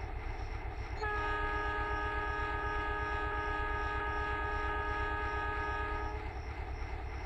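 A train horn blows a long, steady blast.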